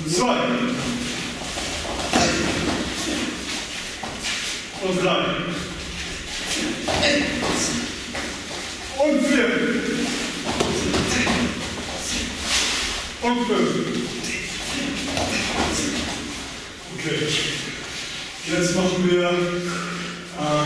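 Bare feet thud and shuffle on soft mats.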